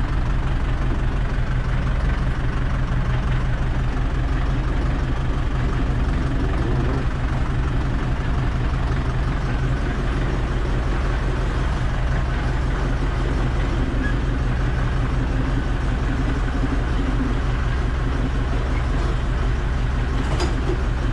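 A diesel tractor engine runs, heard from inside the cab.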